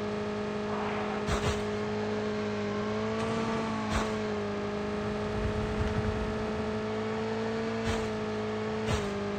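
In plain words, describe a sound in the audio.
A motorbike engine hums steadily, rising and falling in pitch.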